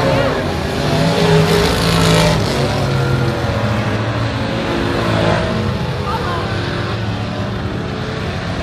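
Race car engines roar around a dirt track.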